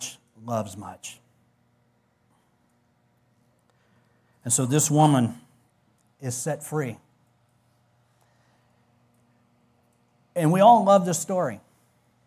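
A man speaks through a microphone in short phrases with long pauses, with animation.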